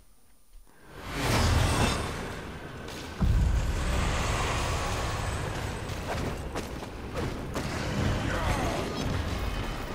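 Footsteps run quickly over dirt and gravel.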